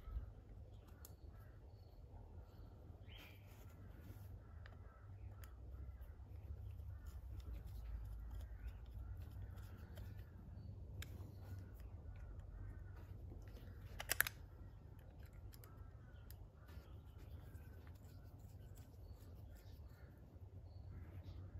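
A screwdriver turns a small screw with faint metallic scraping.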